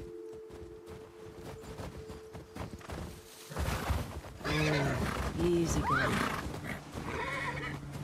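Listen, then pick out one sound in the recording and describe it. A horse's hooves crunch through deep snow.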